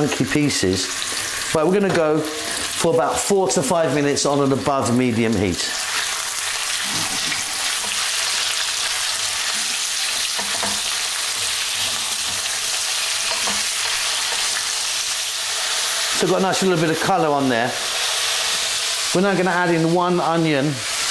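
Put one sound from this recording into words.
Meat sizzles and spits in a hot pan.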